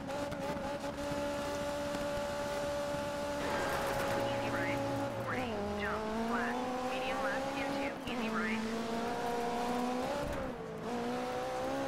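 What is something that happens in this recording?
A rally car engine revs loudly and changes pitch as the car shifts gears.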